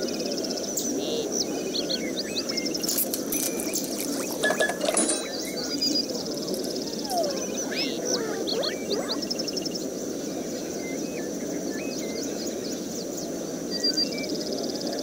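Short electronic game chirps and beeps play.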